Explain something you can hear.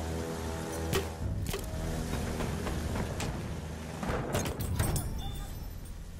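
Rifle shots crack with a sharp echo.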